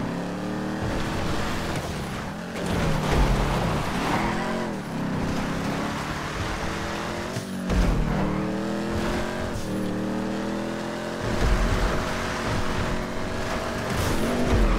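Tyres skid and crunch over loose dirt.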